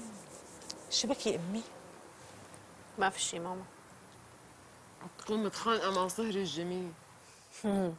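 A middle-aged woman speaks with animation.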